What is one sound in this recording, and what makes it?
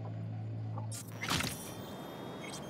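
A sharp electronic whoosh sounds once.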